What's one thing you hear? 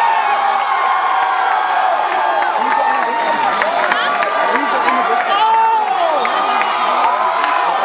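A crowd chatters and calls out excitedly nearby.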